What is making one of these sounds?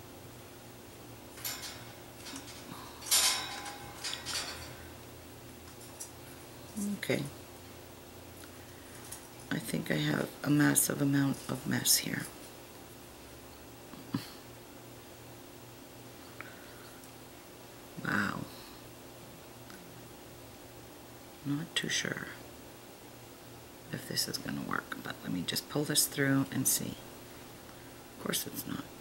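Small glass beads click softly against each other.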